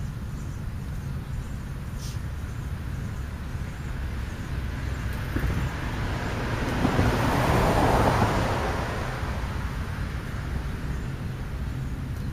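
A starling pecks at food close by.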